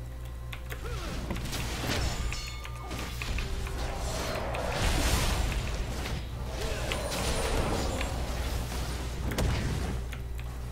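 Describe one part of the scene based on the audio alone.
Game spell effects and hits crackle and whoosh during a fight.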